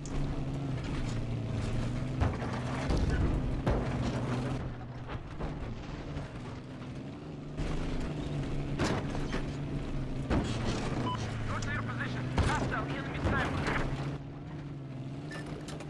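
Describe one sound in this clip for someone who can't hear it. Tank tracks clank and rattle over rough ground.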